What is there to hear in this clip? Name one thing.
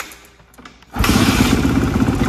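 A four-stroke 450 dirt bike engine fires up.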